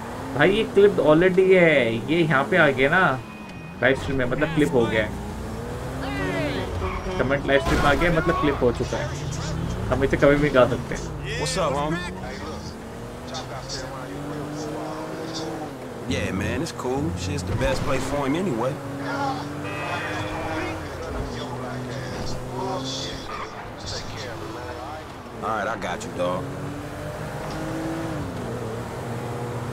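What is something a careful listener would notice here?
A car engine hums and revs as a car drives along.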